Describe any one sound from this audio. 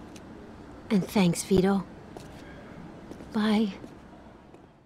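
A young woman cries out in distress close by.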